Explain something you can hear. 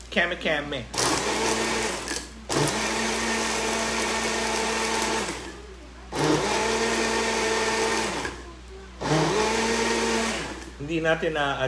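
A blender whirs loudly in short bursts.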